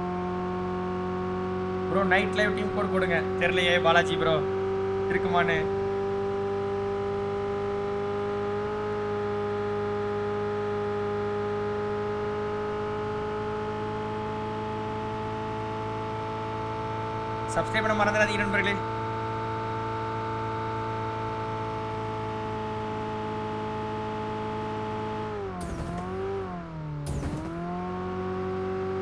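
A car engine hums steadily as a car drives along.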